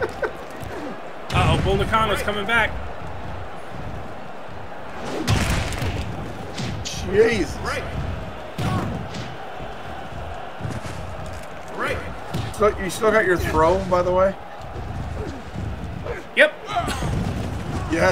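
Bodies slam onto a wrestling ring with heavy thuds.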